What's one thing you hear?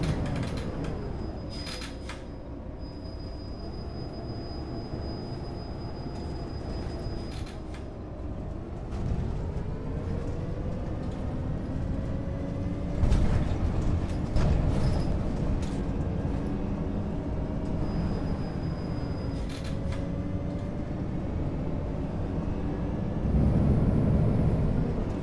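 A bus engine hums and rises and falls in pitch as the bus drives along a winding road.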